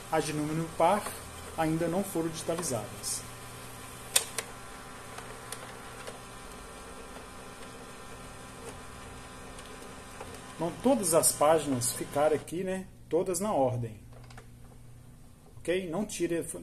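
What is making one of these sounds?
A printer whirs steadily as it feeds a sheet of paper out.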